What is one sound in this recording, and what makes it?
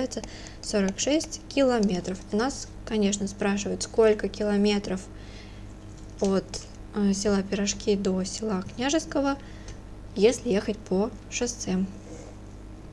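A young woman explains calmly and closely into a microphone.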